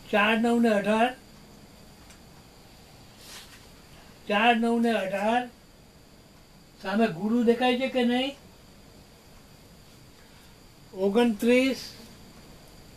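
An elderly man speaks loudly in short bursts close by.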